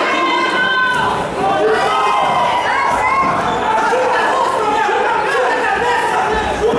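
A crowd cheers and shouts in a large hall.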